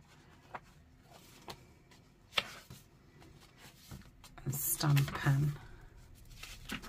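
Stiff paper pages turn and rustle.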